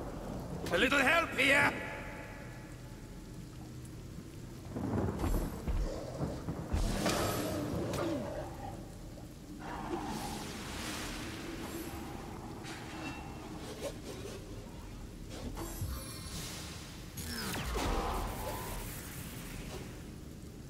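Rain patters steadily throughout.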